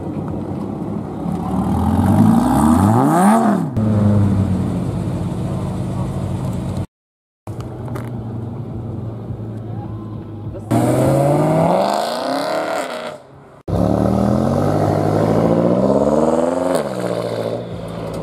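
A sports car engine revs hard and roars as it accelerates away.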